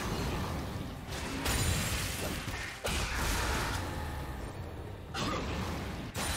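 Video game combat effects crash and whoosh in a busy fight.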